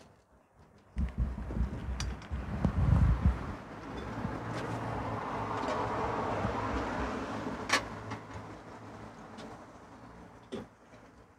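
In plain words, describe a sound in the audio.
A gas burner roars under a pot.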